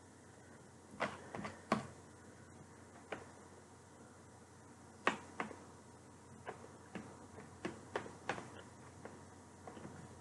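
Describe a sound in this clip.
A fork clicks and knocks against a plastic tray.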